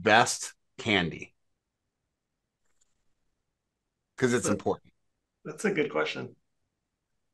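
A middle-aged man speaks calmly in short phrases over an online call.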